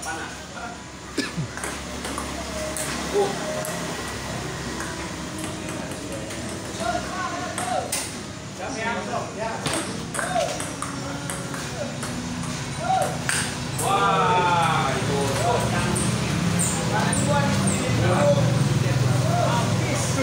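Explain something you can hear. A ping-pong ball clicks sharply off paddles and the table in a quick rally.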